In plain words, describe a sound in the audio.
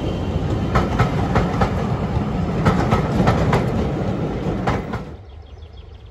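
Railway carriages clatter past rhythmically over the rails, close by.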